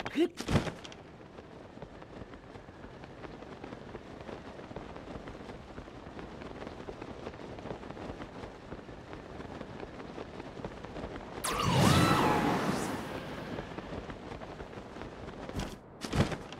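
Wind rushes steadily past while gliding.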